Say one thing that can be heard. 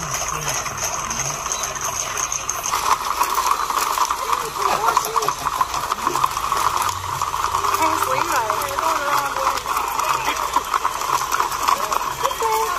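A herd of horses clatters along a paved street, hooves pounding.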